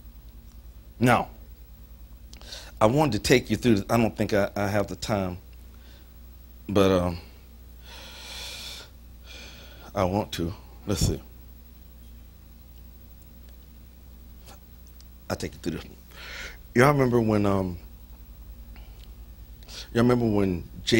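A middle-aged man speaks slowly and solemnly into a microphone, pausing often.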